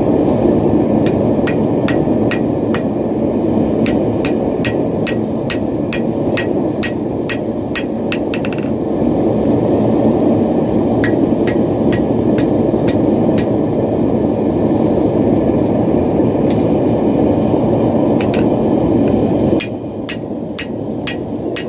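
A hammer rings sharply on an anvil in a steady rhythm.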